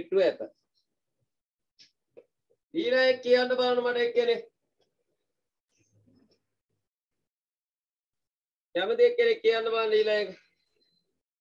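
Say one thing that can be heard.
A man speaks calmly and clearly, close by, in short bursts with pauses.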